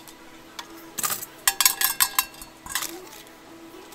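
Metal tongs clatter against fries.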